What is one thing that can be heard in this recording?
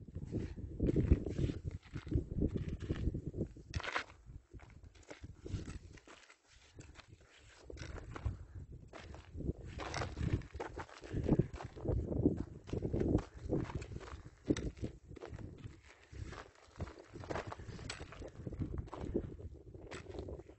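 Boots crunch on loose gravel and stones.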